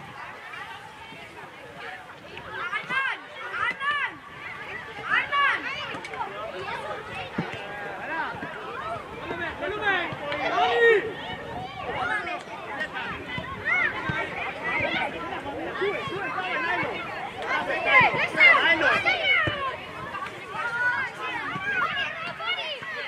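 Children shout and call out excitedly outdoors.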